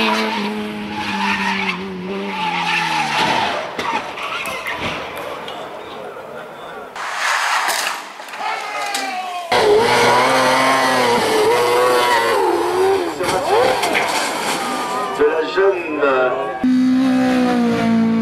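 A rally car engine roars and revs hard.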